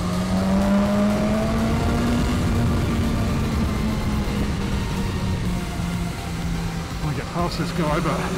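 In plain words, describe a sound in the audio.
A motorcycle engine roars steadily at high speed, close by.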